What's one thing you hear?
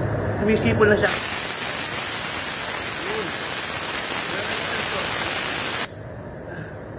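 A spray gun hisses with a loud rush of air.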